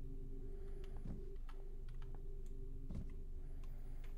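A wooden box drops into a wooden crate with a dull thud.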